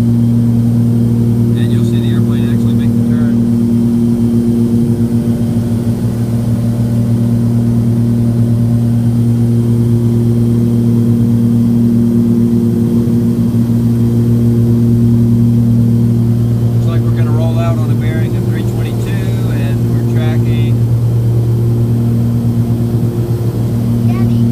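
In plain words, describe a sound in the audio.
An aircraft engine drones steadily and loudly.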